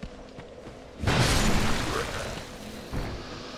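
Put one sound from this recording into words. A heavy sword whooshes through the air and strikes.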